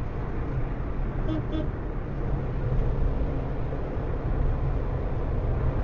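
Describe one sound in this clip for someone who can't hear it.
A truck roars past close by.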